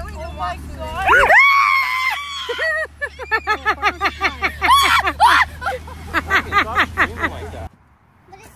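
A young woman screams and laughs close by.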